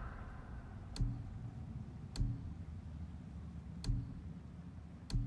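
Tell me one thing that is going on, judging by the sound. Menu clicks sound in quick, sharp ticks.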